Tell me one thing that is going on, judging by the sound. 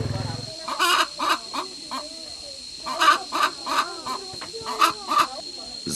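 A hen clucks loudly in short, repeated bursts.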